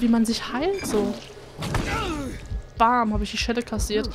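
An axe hacks into a body with heavy, wet thuds.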